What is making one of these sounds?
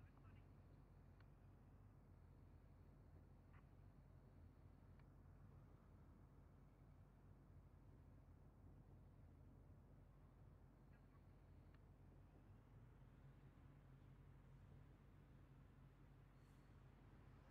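Soft clicks sound now and then from a computer keypad.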